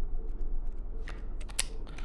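A playing card slides and flips with a soft papery swish.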